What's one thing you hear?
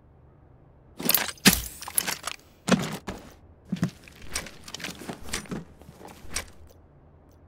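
Gear rustles and clanks as items are moved.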